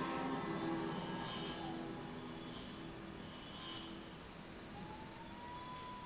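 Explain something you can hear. A low electronic drone hums softly.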